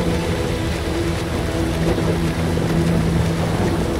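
Water splashes as a man swims.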